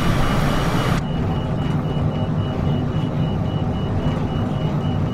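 Jet engines hum in a muffled way from inside the cockpit.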